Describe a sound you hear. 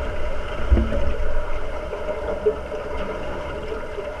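Air bubbles burble up from a diver's breathing.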